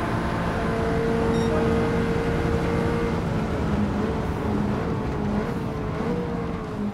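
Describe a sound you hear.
A racing car engine roars at high speed, then drops in pitch as the car slows.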